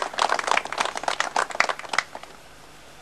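An audience applauds outdoors.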